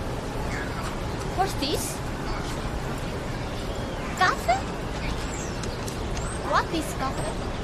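A young woman talks close by with animation.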